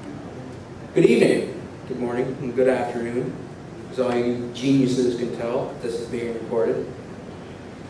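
A young man speaks calmly through a microphone in a large echoing hall.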